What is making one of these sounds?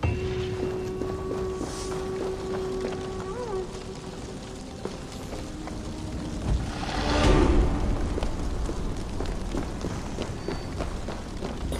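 A fire crackles nearby.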